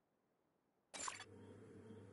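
A game menu gives a sharp click.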